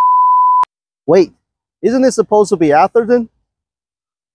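A man speaks calmly and clearly into a clip-on microphone.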